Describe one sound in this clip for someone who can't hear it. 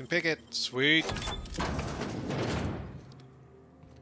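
A heavy metal door slides open with a loud rumble.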